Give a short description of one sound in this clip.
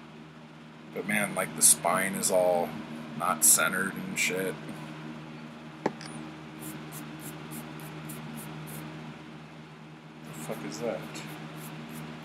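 A man speaks close to a microphone with animation.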